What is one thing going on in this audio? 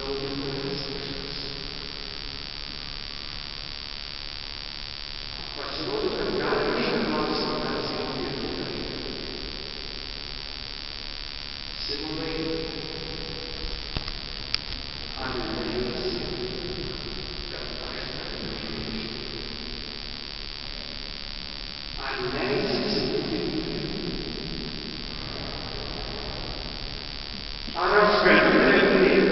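A congregation sings together in phrases, echoing through a large hall.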